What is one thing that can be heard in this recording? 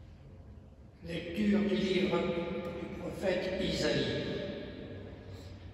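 An elderly man chants into a microphone in a large echoing hall.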